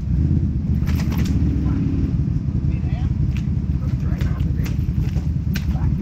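Boots squelch through thick mud.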